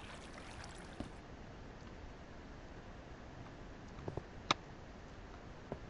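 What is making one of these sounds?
Footsteps thud softly on stone.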